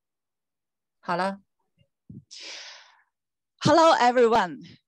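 A young woman speaks into a handheld microphone, close up.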